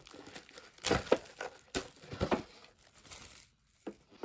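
A cup is set down on a wooden table with a light knock.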